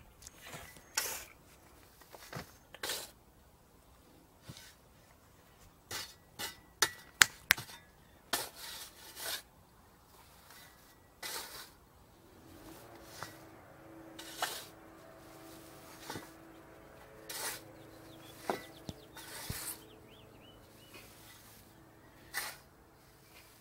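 A shovel scrapes and digs into dry soil.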